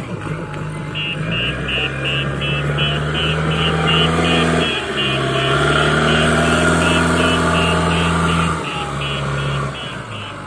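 A reversing alarm beeps in quick, steady pulses.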